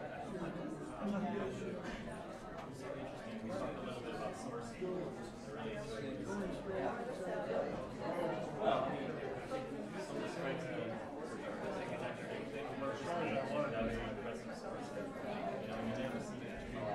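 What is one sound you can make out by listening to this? A crowd of men and women chatters all around in a large room.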